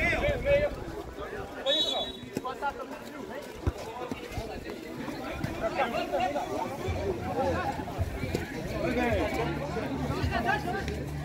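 Several men shout and call out to each other outdoors.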